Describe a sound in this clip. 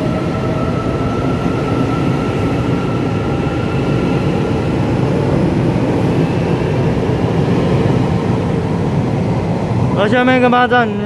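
A train rumbles steadily along a platform as it pulls away.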